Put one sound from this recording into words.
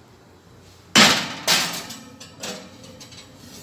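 A metal baking tray scrapes and clatters against an oven rack.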